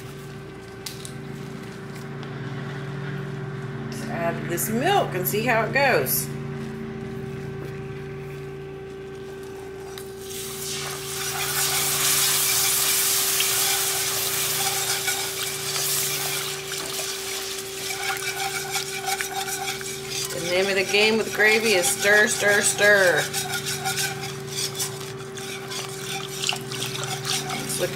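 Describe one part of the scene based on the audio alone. Thick sauce bubbles and sizzles in a hot pan.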